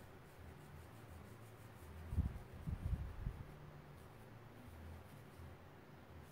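A brush rubs softly across paper.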